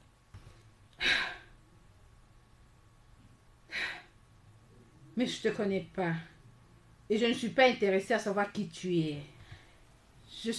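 A young woman speaks mockingly nearby.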